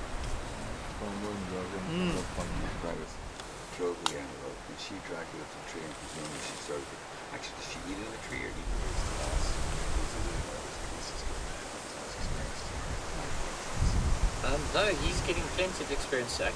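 Leaves and grass rustle as a leopard moves through the undergrowth.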